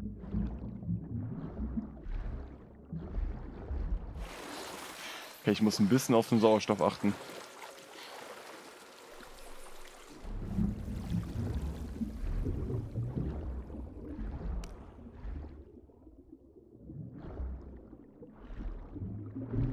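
Water rumbles low and muffled as a swimmer moves underwater.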